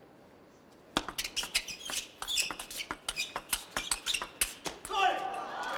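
A ball clicks back and forth on a table in a quick table tennis rally.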